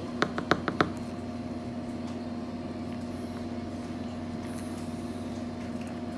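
Hands crumble a soft cake.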